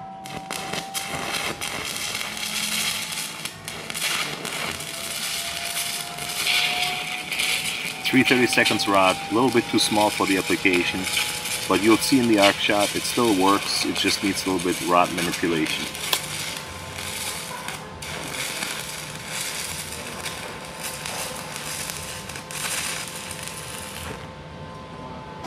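A welding arc crackles and sizzles steadily.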